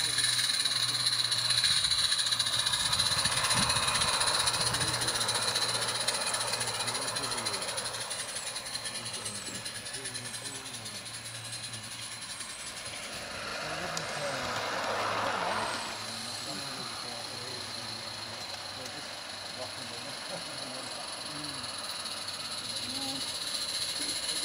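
Wheels of a small train clatter along rails.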